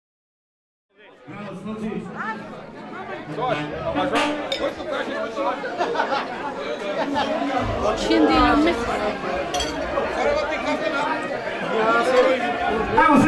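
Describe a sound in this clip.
A crowd of men and women chat at a table.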